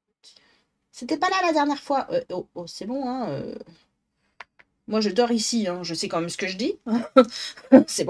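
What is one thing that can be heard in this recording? A woman talks with animation into a close microphone.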